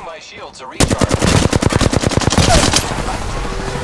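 A rifle fires in a fast burst of shots.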